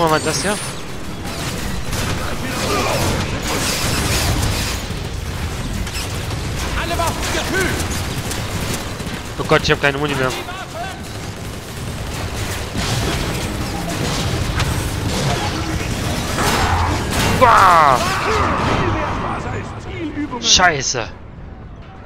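Gunfire and laser blasts rattle rapidly.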